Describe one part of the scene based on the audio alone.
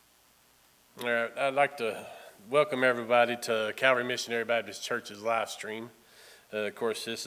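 A man speaks steadily into a microphone in a room with a slight echo.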